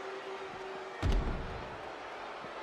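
A heavy body slams down onto the floor with a thud.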